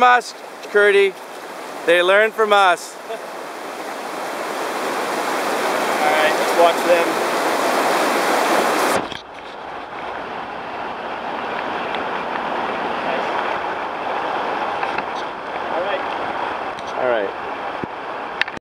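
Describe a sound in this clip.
River rapids rush and splash steadily outdoors.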